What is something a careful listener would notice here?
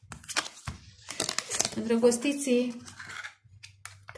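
A card slides and rustles across a table.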